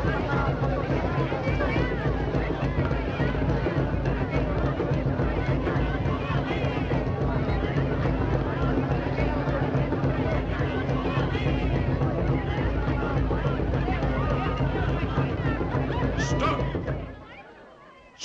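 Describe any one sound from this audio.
A crowd chants and sings loudly.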